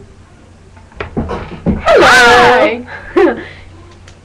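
Two young women laugh close to a microphone.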